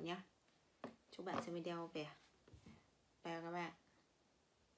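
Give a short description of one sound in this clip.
A young woman speaks close to the microphone in short, calm phrases.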